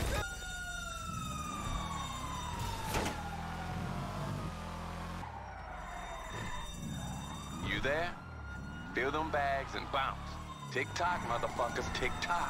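A car engine revs and roars as the car speeds away.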